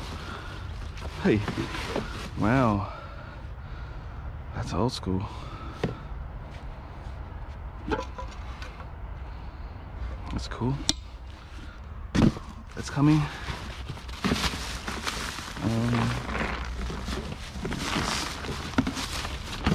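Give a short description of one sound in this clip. Junk rattles and clatters as it is rummaged through.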